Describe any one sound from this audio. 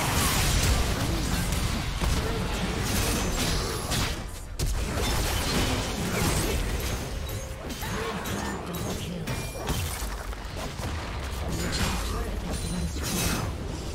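Game combat sound effects clash and burst with explosive spell blasts.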